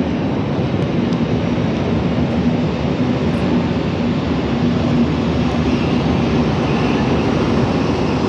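A locomotive hums as it moves slowly along a track.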